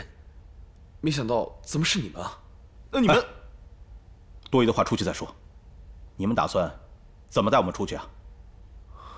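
A man answers calmly, close by.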